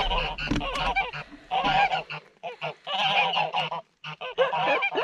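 Geese honk loudly and repeatedly nearby.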